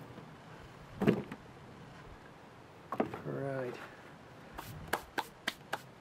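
Small bulbs knock and clatter into a plastic pot.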